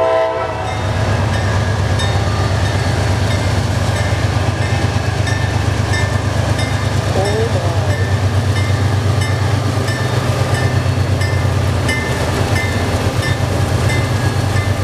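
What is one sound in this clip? Train wheels clack rhythmically over the rail joints.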